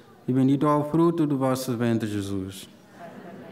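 A man chants through a microphone, heard over a loudspeaker.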